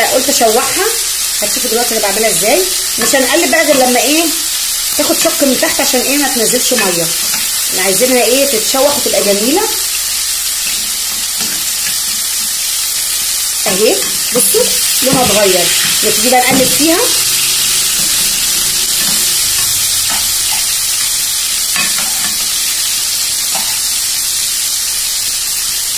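A spatula scrapes and clinks against a frying pan.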